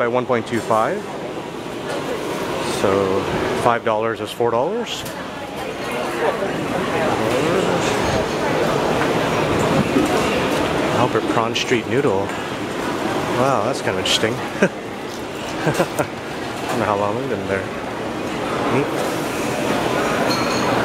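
A crowd murmurs and chatters in a busy, echoing hall.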